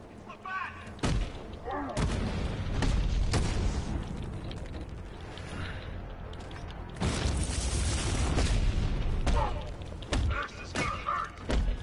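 Punches and kicks thud in a fast fight.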